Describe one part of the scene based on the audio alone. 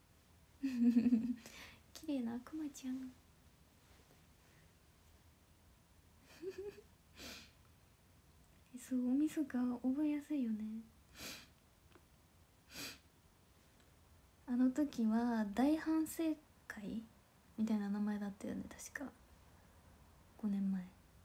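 A young woman talks playfully and close up into a microphone, with pauses.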